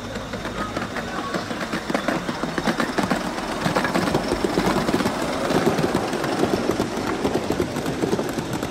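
Model train wheels click rapidly over rail joints.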